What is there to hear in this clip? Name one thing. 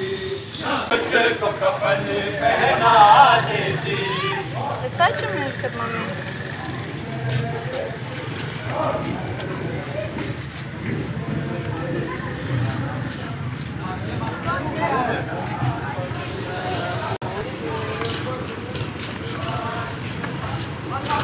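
Footsteps shuffle on a paved street.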